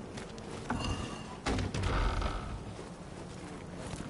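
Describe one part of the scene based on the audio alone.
Wooden doors creak open.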